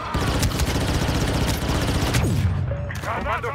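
Rapid blaster shots crackle in quick bursts.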